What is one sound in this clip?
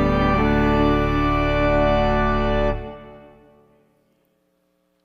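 A pipe organ plays a sustained chord that fades away in a large reverberant hall.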